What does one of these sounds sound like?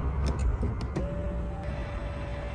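An electric seat motor hums steadily.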